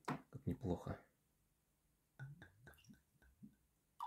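Liquid pours from a bottle into a glass.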